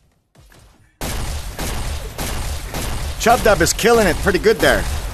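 A gun fires a rapid burst of shots.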